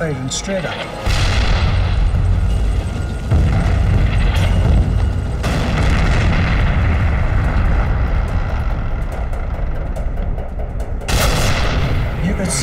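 Tank engines rumble and tracks clatter.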